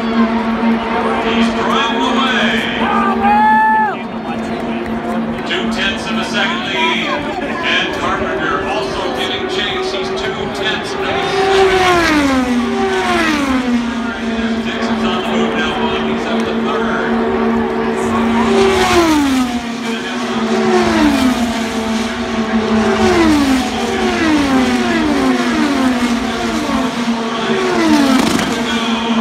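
Race car engines scream past at high speed, dropping in pitch as each one goes by.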